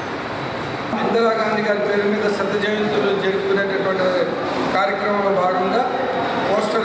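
A man speaks calmly and steadily, close by.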